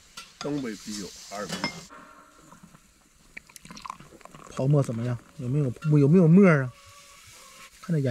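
Beer pours from a bottle into a glass and fizzes.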